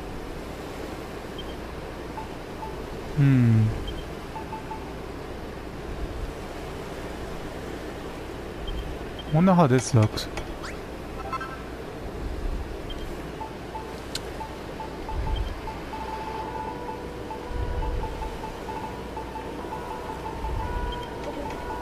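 Soft electronic menu blips sound as selections change.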